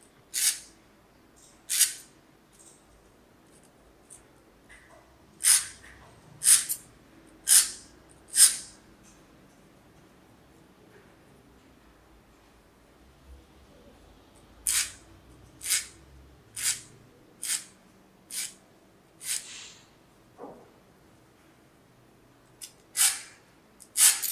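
A metal file rasps in short, sharp strokes against thin metal.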